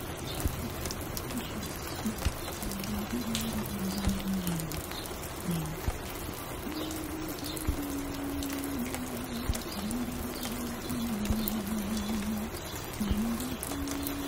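Slow, soft music plays from a record player.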